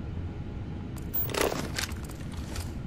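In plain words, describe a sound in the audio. An electronic scanner switches on with a short whoosh and click.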